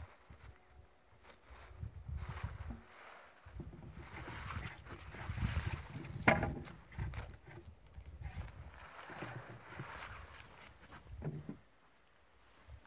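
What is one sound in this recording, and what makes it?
A hide rustles and scrapes as hands smooth it on the frozen ground.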